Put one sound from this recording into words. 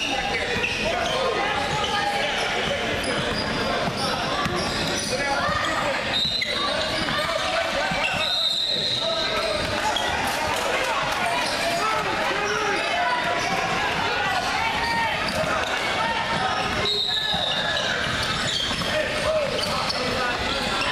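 Young players and spectators shout and chatter in a large echoing gym.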